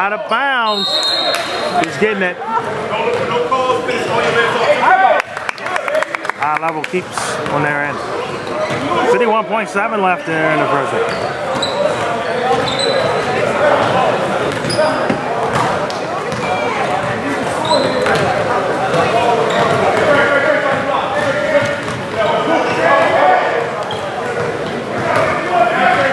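A man shouts instructions loudly in a large echoing gym.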